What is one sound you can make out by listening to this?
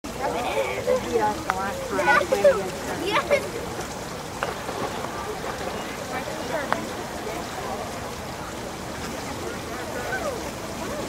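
Children and adults talk and call out nearby, outdoors.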